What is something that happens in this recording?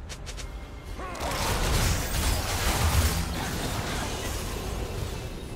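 Game spell effects crackle and boom during a fight.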